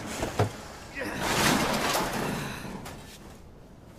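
Metal crashes and debris clatters.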